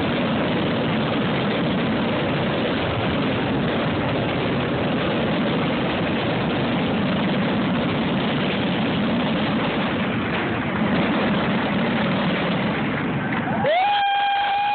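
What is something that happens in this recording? Aerial fireworks shells boom and crackle in a dense finale barrage.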